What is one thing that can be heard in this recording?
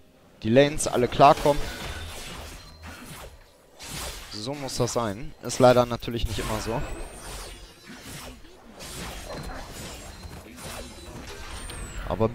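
Weapon strikes and spell effects clash in a video game fight.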